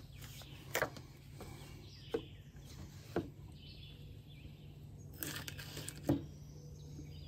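A knife clicks against a plate and a butter dish.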